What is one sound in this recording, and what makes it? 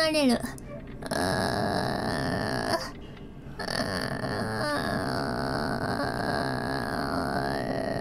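A young woman lets out a long, strained, croaking drawn-out cry into a close microphone.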